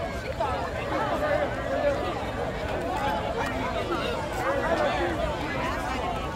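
A crowd of young men and spectators cheers and shouts outdoors.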